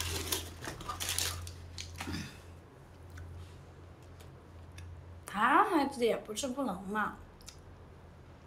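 A young woman crunches crisp snacks close by.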